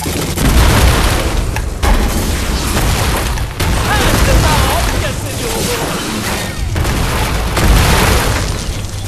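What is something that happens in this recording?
Explosions thud loudly.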